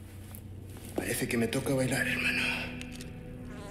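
A man speaks in a low, taunting voice close by.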